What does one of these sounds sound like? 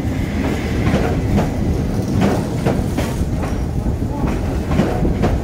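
A train rolls past close by with a steady low rumble.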